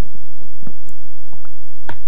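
Wooden blocks are chopped with quick, repeated knocks.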